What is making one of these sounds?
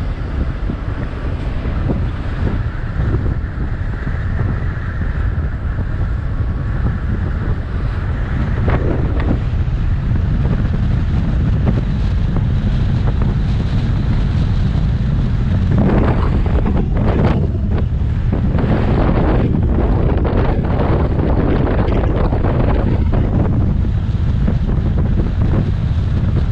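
Wind rushes loudly past an open vehicle, gusting harder later on.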